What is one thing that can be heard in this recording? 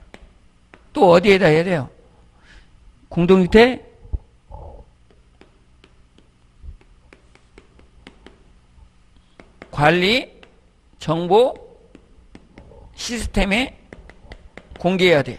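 A man speaks into a microphone in short, lively bursts with pauses between them.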